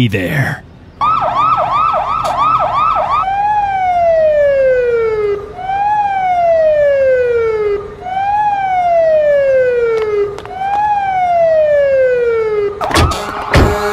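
A siren wails, rising and falling in long repeated sweeps.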